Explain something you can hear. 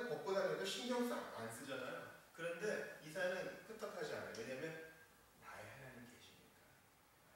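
A man speaks with animation into a microphone in a slightly echoing room.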